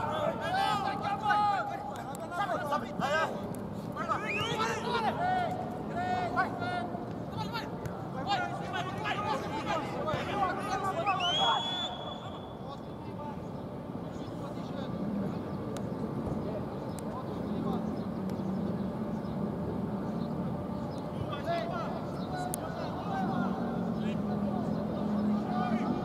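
Men shout and call to each other outdoors.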